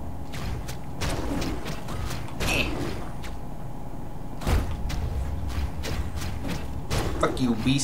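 Video game sword slashes and hits crack sharply over and over.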